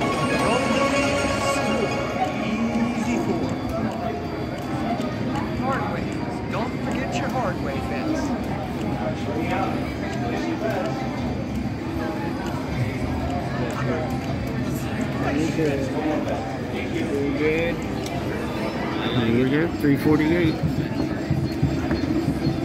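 A gaming machine plays bright electronic jingles.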